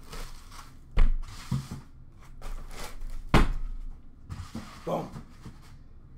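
A cardboard box thumps and scrapes as it is set down on a glass counter.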